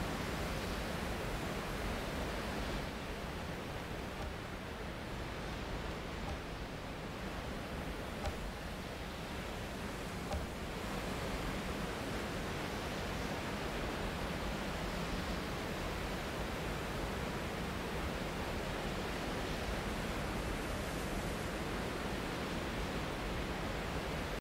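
Torch flames crackle softly.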